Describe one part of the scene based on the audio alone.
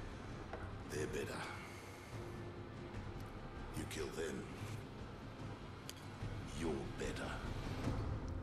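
An older man speaks in a low, gruff voice.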